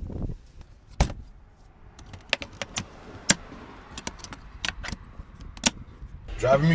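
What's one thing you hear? A plastic latch clicks and snaps.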